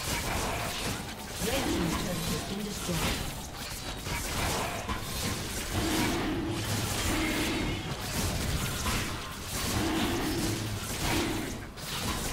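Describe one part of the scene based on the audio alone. Magical blasts and strikes clash in a busy video game battle.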